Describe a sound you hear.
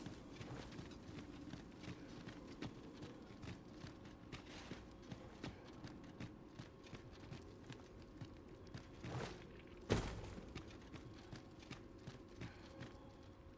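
Footsteps crunch steadily over leaves and soil.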